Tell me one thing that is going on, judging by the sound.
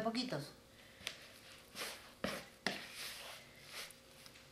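Hands knead and squish wet dough in a bowl.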